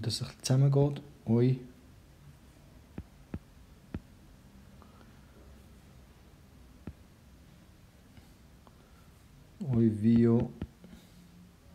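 A young man pronounces words slowly and clearly into a close microphone.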